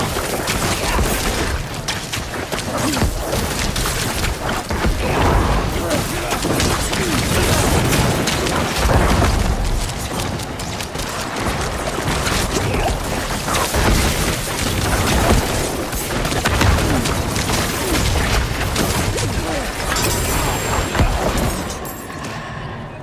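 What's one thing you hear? Spells burst and crackle in a fast-paced fight.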